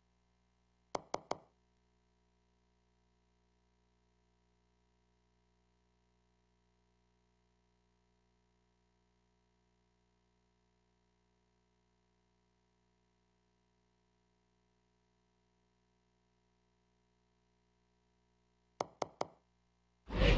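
Three quick menu clicks tick.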